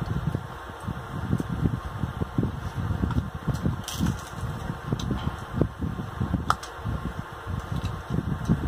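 A woman chews food wetly, smacking her lips close to a microphone.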